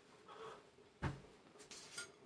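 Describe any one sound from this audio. A lid clanks down onto a cooking pot.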